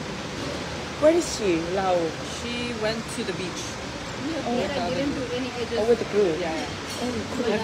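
A young woman speaks casually close by.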